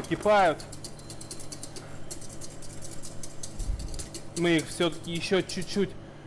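A whisk scrapes and clicks against a metal pot.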